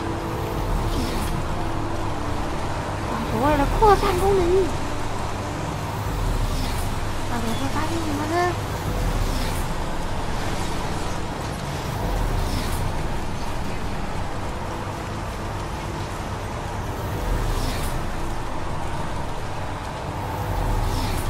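Heavy rain falls steadily outdoors.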